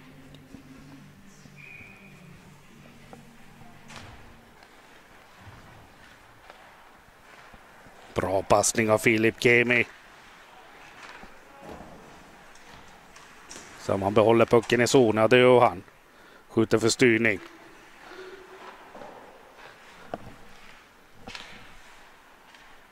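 Skates scrape across ice in a large echoing arena.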